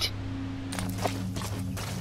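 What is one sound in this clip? Footsteps run over grass.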